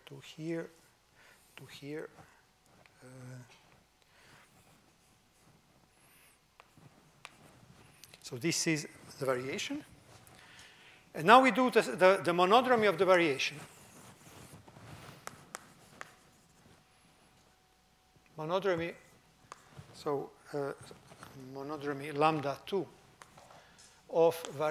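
An elderly man lectures calmly, with pauses.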